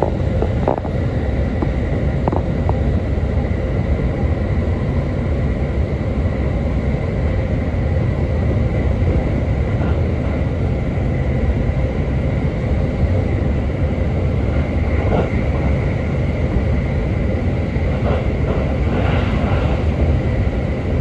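A train rumbles steadily along the tracks, heard from inside a carriage.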